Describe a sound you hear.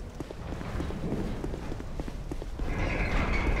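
Armoured footsteps run across stone paving.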